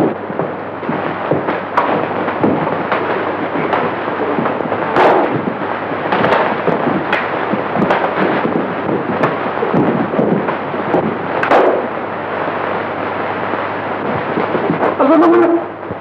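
Several men scuffle and shout in a brawl.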